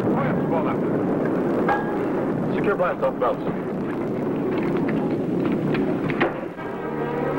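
Young men talk excitedly over an old, hissy recording.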